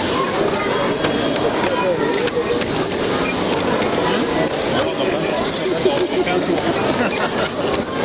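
A model train rumbles along its track.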